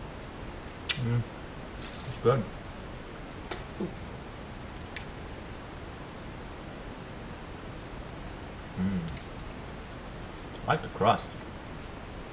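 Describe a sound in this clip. A man murmurs a few short words close by.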